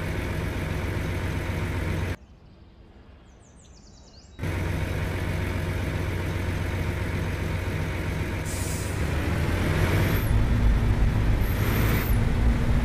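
A truck's diesel engine rumbles steadily.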